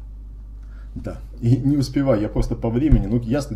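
A middle-aged man speaks with animation into a close microphone.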